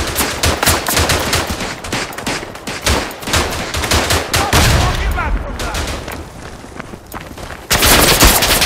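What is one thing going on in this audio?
Gunfire cracks and echoes rapidly through a stone tunnel.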